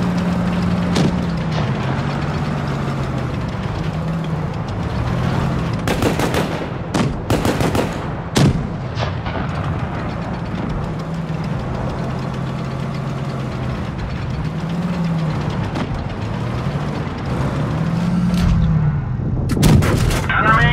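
A tank cannon fires with a loud bang.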